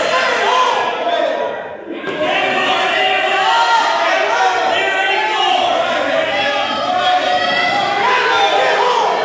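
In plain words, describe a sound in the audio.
A crowd of spectators shouts encouragement at a wrestling match in an echoing gym.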